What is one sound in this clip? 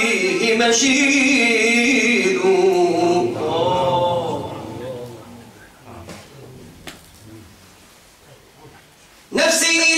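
An elderly man recites in a slow, melodic voice, close by.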